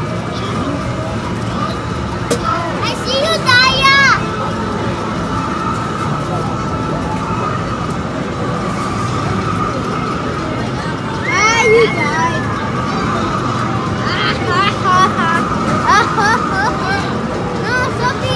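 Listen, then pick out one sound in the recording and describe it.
A racing arcade game plays a droning engine roar through loudspeakers.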